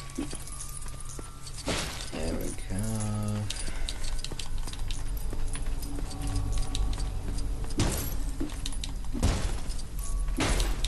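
A woman talks calmly into a nearby microphone.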